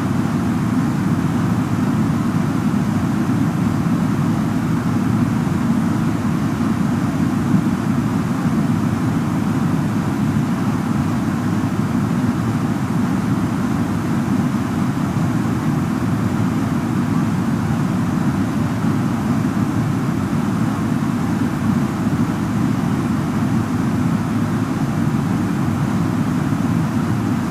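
A jet airliner's engines and rushing air roar steadily and low.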